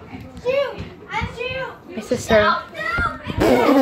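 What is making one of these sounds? A child shouts excitedly in the room.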